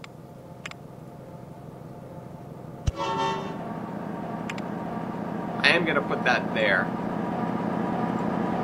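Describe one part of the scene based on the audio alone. A train rumbles along a track.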